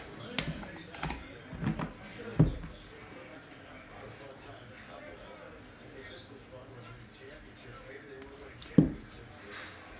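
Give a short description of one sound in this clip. Plastic card cases click and clatter as they are handled.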